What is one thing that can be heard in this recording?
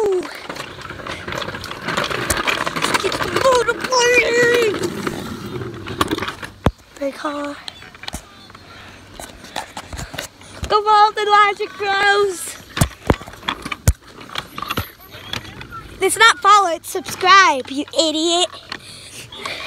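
A young boy talks close to a phone microphone, with animation.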